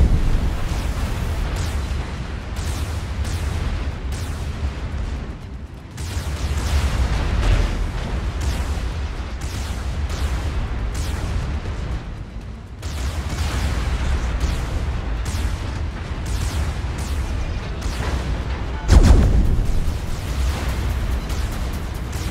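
Heavy naval guns fire in loud booming blasts.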